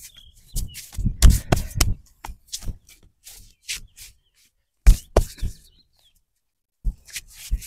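Hands slap and rub a leg through cloth trousers during a massage.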